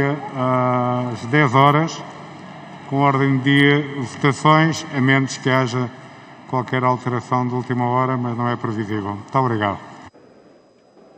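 A woman speaks steadily through a microphone in a large hall.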